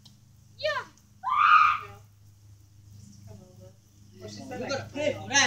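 A young child shouts and squeals nearby outdoors.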